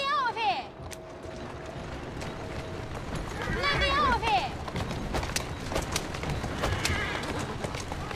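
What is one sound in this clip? Horse hooves clop on the street.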